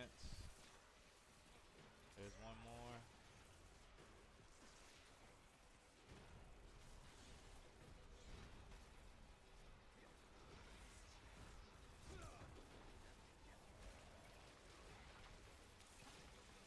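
Weapons strike and thud against a monster.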